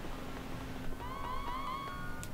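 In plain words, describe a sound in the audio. A bright electronic jingle chimes in a video game.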